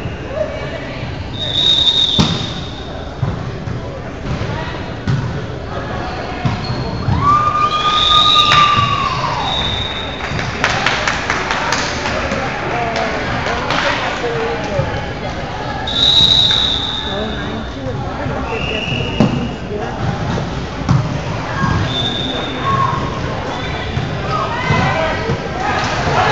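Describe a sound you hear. Players call out and shout across an echoing gym.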